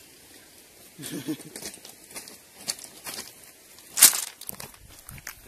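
Bare feet crunch on loose pebbles.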